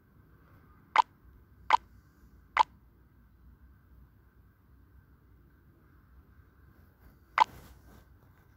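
Short electronic interface clicks sound as items are selected.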